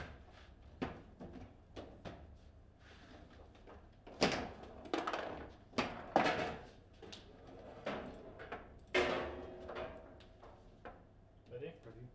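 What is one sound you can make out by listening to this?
A foosball ball cracks against plastic players and the table walls.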